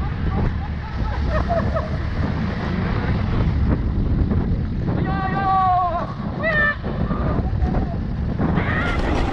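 A single-cylinder dual-sport motorcycle rides along a dirt trail.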